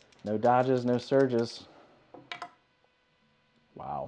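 Dice tumble and clatter onto a felt-lined tray.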